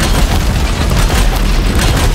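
A metal machine explodes with a burst of crackling sparks.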